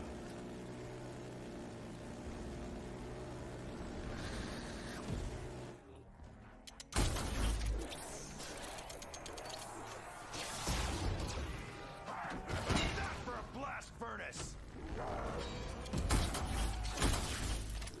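Monsters snarl and growl up close.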